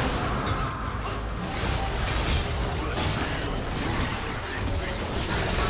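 Game spell effects and combat sounds crackle and burst in a busy fight.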